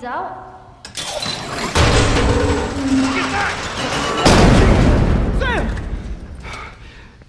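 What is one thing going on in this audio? A man shouts loudly in alarm.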